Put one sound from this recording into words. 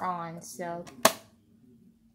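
A button clicks.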